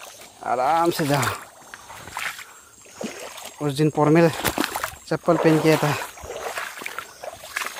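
Rubber boots squelch in thick mud.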